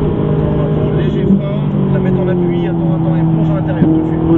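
A man speaks with animation inside the car.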